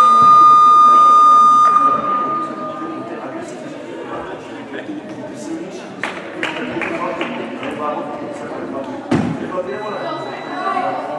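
A man talks to a group of children, close by, in an echoing hall.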